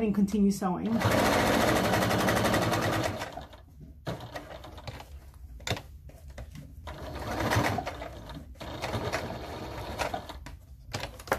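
A sewing machine stitches with a fast, steady whirr.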